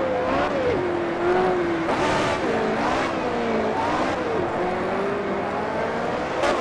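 A racing car engine whines at high revs, its pitch dropping and rising through the gears.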